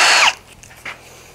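A power tool whirs briefly and winds down.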